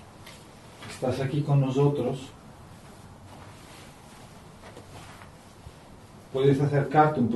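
A woman speaks quietly nearby in an echoing room.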